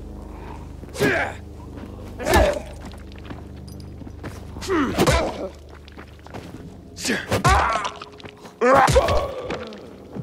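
A blunt weapon thuds heavily against a body, again and again.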